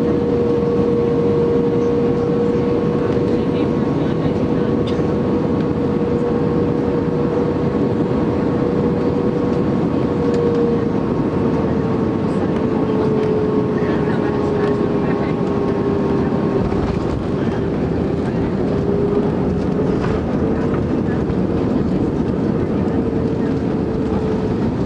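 A jet airliner's engines roar loudly with a steady whine.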